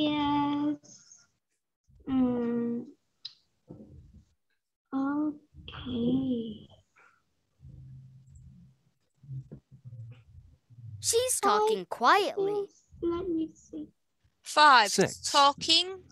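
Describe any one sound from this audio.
A young woman speaks clearly and slowly over an online call.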